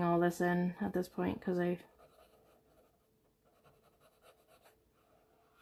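A finger rubs softly across paper.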